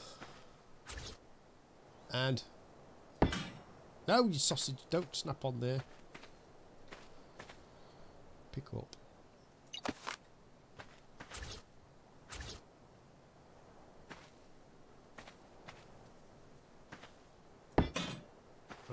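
Stone blocks thud as they are set down.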